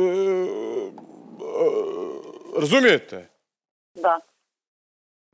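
A man speaks expressively into a microphone, his voice rising and falling.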